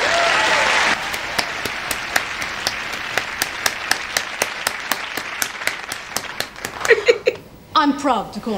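A young woman claps her hands rapidly.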